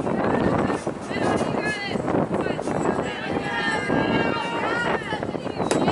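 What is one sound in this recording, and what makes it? Young girls chant and cheer loudly outdoors.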